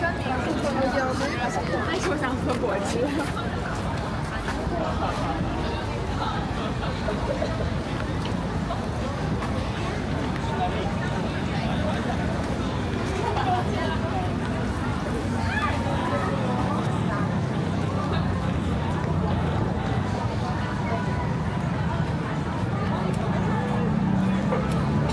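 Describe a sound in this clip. A crowd of people murmurs and chatters in the distance outdoors.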